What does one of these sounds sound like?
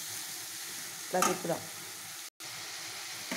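A spoon stirs vegetables in a metal pan.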